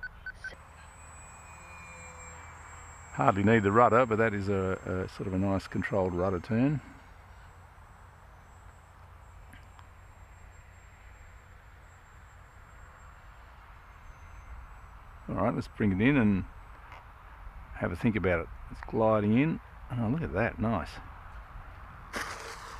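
A small model plane's motor whirs overhead.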